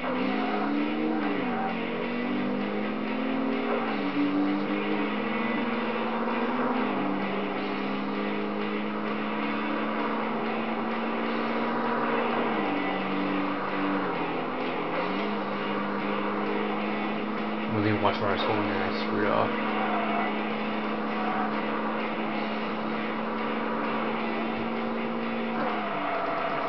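A racing car engine roars at high speed, its pitch rising and dropping as gears shift.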